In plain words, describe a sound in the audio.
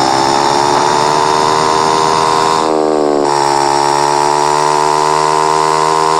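A motorbike engine revs loudly and steadily, its pitch shifting as it speeds up.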